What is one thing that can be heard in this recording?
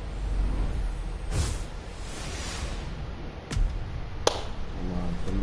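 Sparks crackle and whoosh as fireworks burst.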